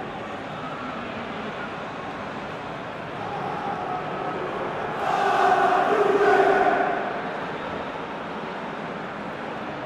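A large stadium crowd roars and chants in waves.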